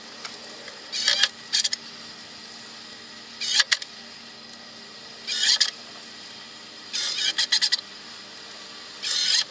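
A cordless drill whirs in short bursts, driving screws into wood.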